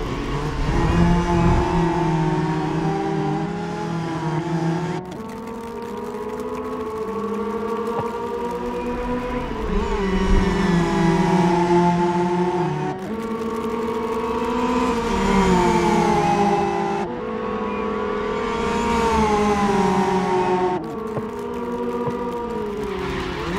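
Racing car engines roar and whine as they shift through the gears.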